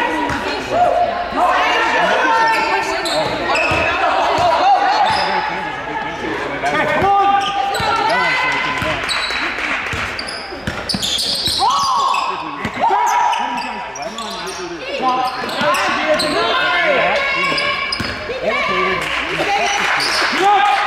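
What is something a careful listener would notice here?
Young women players shout and call out to each other.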